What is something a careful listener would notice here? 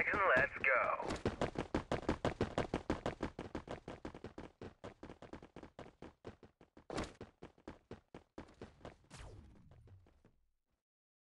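Footsteps hurry along a hard surface.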